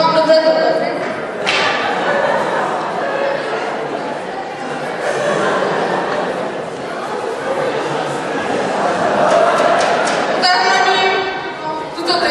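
A large audience murmurs and chatters in an echoing hall.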